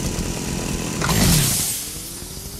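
A sudden whoosh bursts out and fades.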